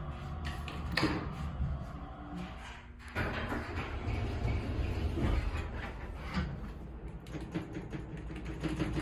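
An elevator button clicks when pressed.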